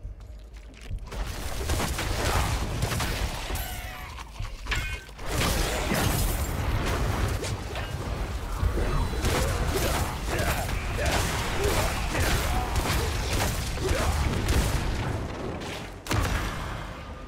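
Fiery blasts roar and crackle loudly.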